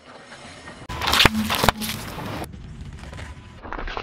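A car tyre crushes snack packets with sharp pops.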